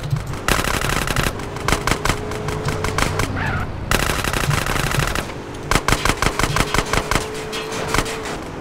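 A car engine roars steadily as it drives fast.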